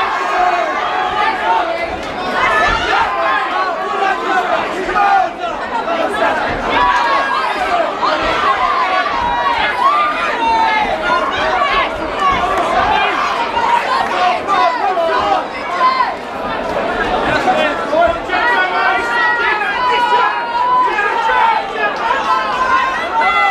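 A crowd shouts and cheers loudly in a large hall.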